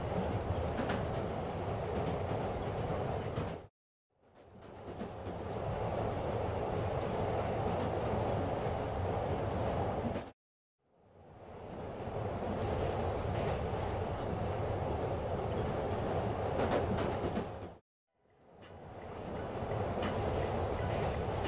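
A subway train rumbles and rattles steadily.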